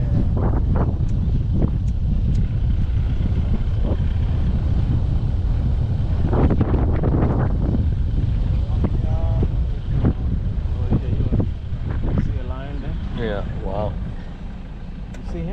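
A vehicle engine rumbles steadily while driving over a bumpy dirt track.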